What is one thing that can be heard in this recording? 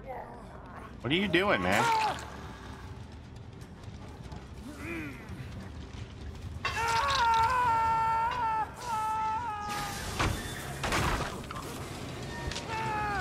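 An older man talks with animation into a close microphone.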